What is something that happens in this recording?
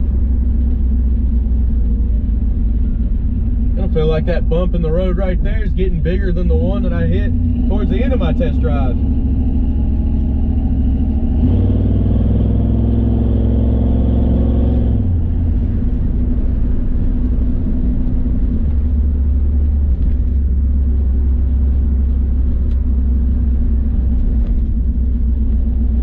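An old truck engine rumbles loudly throughout.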